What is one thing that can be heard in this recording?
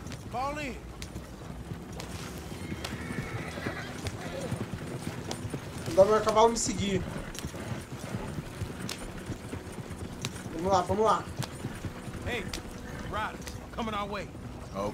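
A horse-drawn wagon rolls and rattles along a dirt track.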